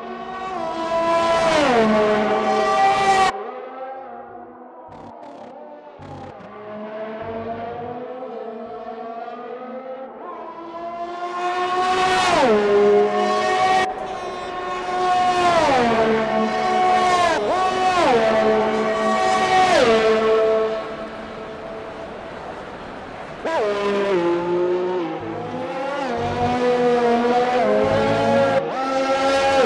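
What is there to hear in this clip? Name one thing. A racing car engine screams at high revs, dropping in pitch with each gear change.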